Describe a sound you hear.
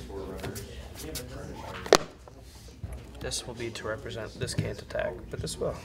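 Playing cards slide and tap softly on a table mat.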